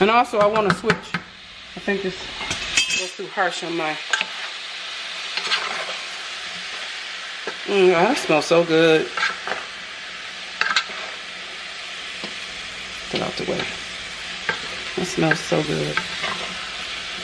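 Food sizzles steadily in a pan.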